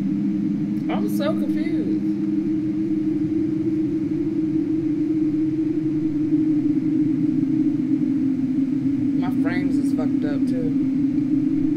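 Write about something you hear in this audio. A young woman speaks briefly and quietly into a microphone.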